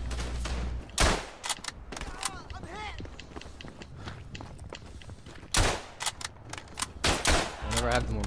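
A rifle fires.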